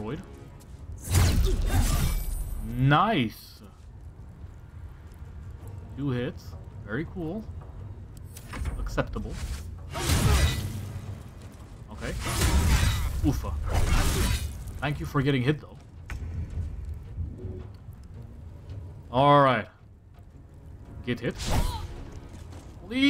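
Blows and magic blasts crash in a fight.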